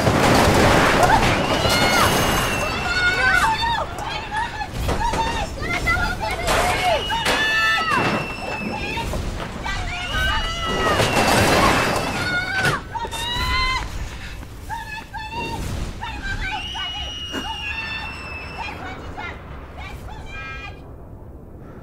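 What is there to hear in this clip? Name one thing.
A middle-aged woman shouts and calls out loudly in distress, outdoors.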